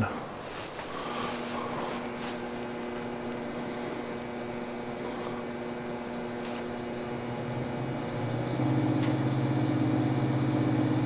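An electric machine motor starts and hums steadily, growing louder.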